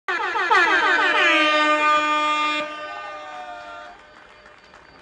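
A woman sings a long, drawn-out note through a loudspeaker outdoors.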